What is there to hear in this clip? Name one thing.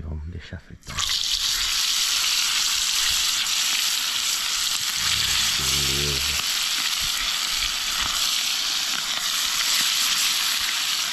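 Fish pieces sizzle in hot oil in a frying pan.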